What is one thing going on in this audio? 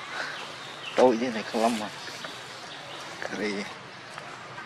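A baby monkey cries out in short whining calls nearby.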